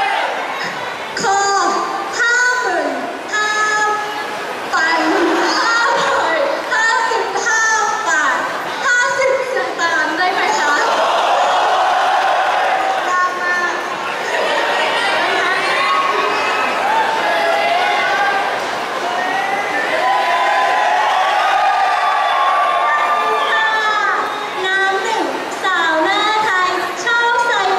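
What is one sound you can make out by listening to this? A young woman talks with animation into a microphone over loudspeakers in a large hall.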